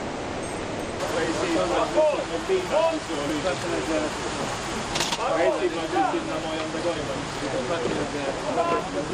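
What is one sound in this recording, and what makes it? An elderly man talks and greets people close by.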